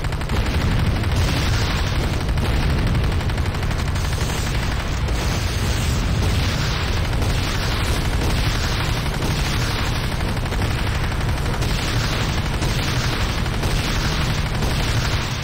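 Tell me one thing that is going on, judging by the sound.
Tank cannons fire with loud booms.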